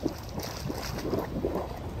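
Water splashes and bubbles from a fountain.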